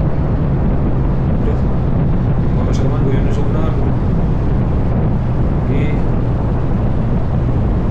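Wind buffets loudly and steadily.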